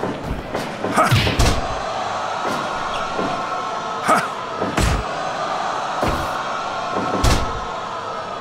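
Blows and slams thud in a wrestling game.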